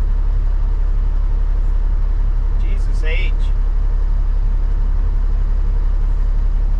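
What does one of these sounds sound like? A truck's diesel engine idles with a deep, steady rumble.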